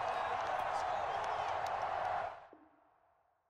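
A stadium crowd roars loudly, then fades away.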